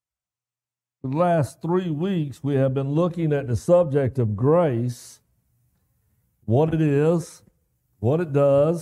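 A man speaks calmly to an audience through a microphone, with pauses.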